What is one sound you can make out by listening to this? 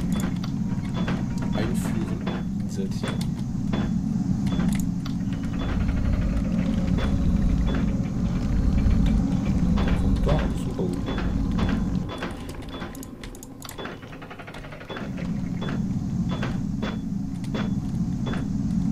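Footsteps clank steadily on a metal floor.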